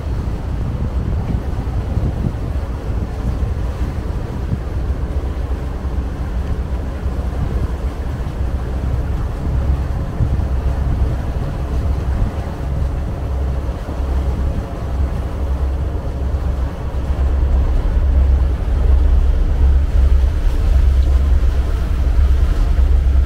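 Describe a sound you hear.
Wind buffets loudly, as if outdoors on open water.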